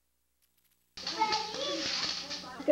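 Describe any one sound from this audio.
A young girl talks brightly and loudly close by.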